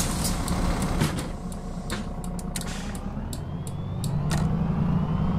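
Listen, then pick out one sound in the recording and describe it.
Bus doors hiss and thump shut.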